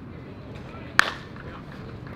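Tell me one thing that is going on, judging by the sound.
A baseball bat strikes a ball with a sharp crack.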